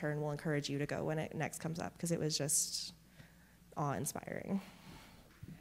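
A middle-aged woman speaks warmly through a microphone in an echoing hall.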